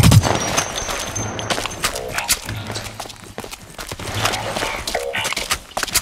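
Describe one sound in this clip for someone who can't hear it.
A weapon clicks as it reloads.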